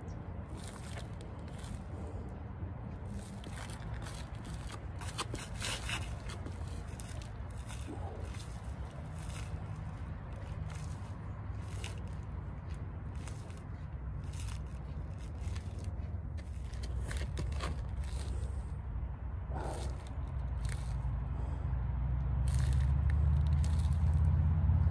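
Shoe soles tap on gritty ground again and again.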